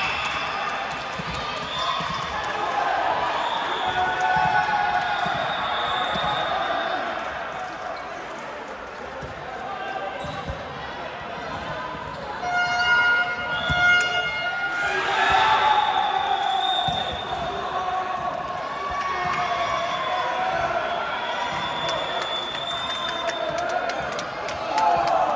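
Young women call out and shout to each other in a large echoing hall.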